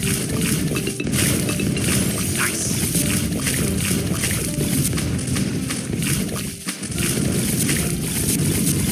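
Balloons pop in quick, repeated bursts.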